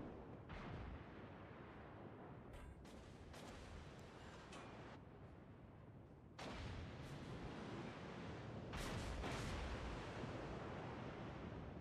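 Shells splash into water.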